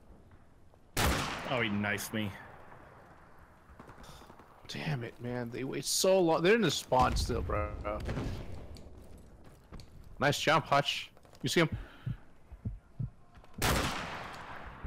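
A rifle fires with a loud crack.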